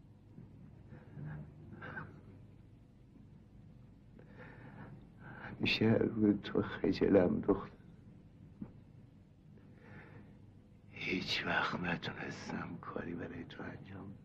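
An elderly man speaks quietly and with emotion, close by.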